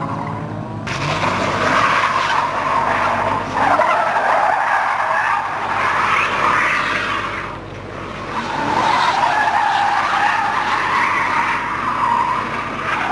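Tyres screech loudly on pavement as a car spins.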